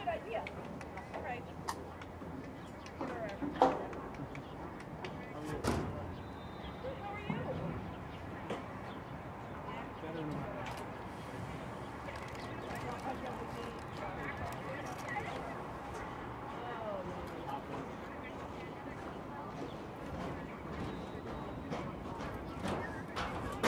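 Several people talk at a distance outdoors.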